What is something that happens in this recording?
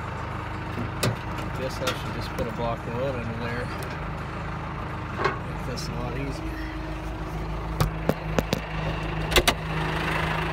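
Metal parts of a tractor clank and rattle.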